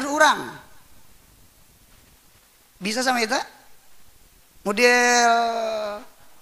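A man speaks into a microphone in short bursts, then draws out a long chanted phrase.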